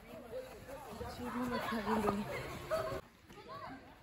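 A boy talks close by.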